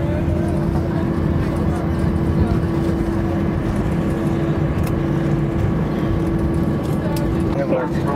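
Jet engines hum steadily from inside an airliner cabin.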